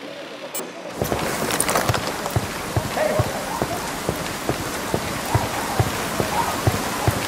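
Footsteps tread steadily on a road outdoors.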